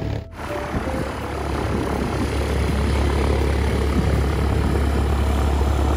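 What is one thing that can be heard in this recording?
A small propeller plane's engine drones as it taxis nearby.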